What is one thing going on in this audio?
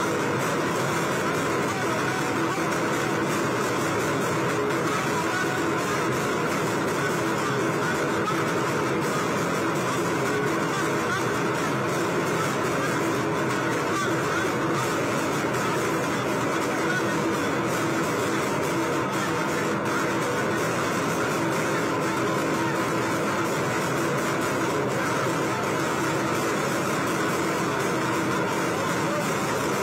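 A large crowd cheers and chants loudly outdoors.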